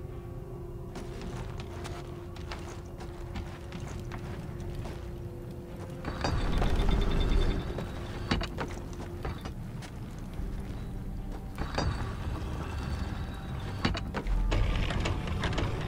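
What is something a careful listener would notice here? Footsteps run across wooden planks.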